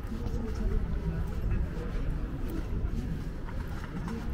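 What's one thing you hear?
Footsteps tap on paving stones nearby.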